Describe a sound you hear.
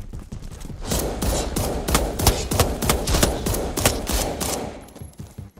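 Gunshots fire in rapid bursts, loud and close.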